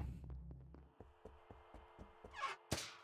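Quick footsteps patter at an even pace.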